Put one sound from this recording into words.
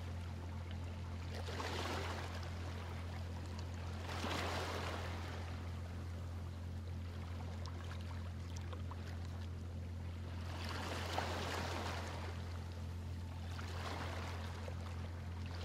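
Small waves wash gently onto a shore in repeated soft swells.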